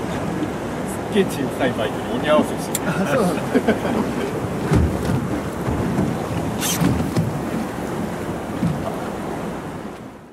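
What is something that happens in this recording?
A man talks casually nearby, partly drowned by the wind.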